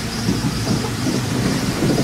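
A windshield wiper swishes across the glass.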